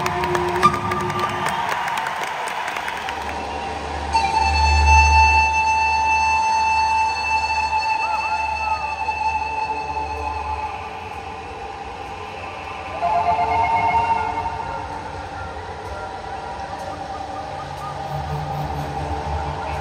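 A band plays with electric guitar, bass and drums.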